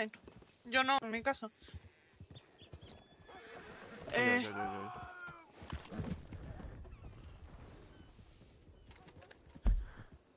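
Horses' hooves clop slowly on a dirt road.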